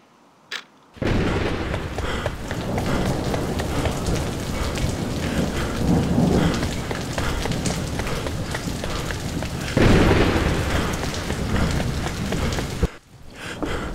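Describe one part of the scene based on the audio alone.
Heavy rain pours down.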